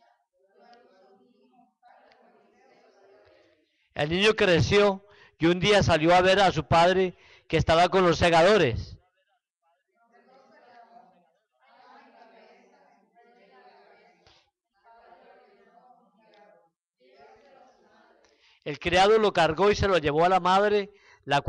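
A man speaks through a microphone and loudspeakers, quietly at times and in loud, drawn-out bursts at others.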